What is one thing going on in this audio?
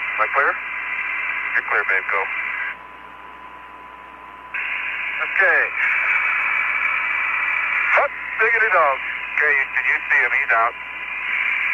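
A man speaks calmly over a crackly radio link.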